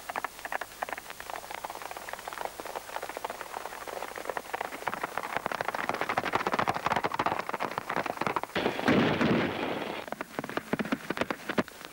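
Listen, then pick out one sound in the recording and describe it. Horses' hooves gallop over a dirt road.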